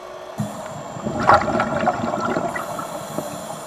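Scuba bubbles gurgle and rush upward in a burst underwater.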